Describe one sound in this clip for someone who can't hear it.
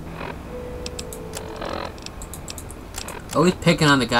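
Electronic menu clicks tick softly, one after another.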